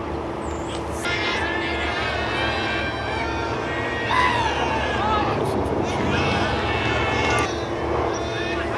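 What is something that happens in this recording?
A group of young men cheer and shout from nearby.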